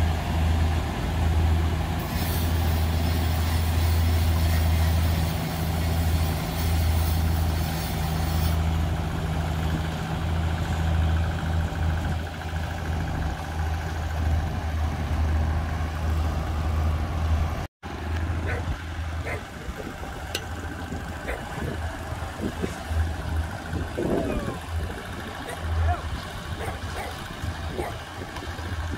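A heavy diesel engine hums loudly and steadily.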